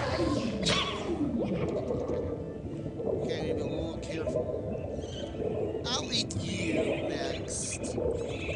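Small cartoon creatures chirp and squeak.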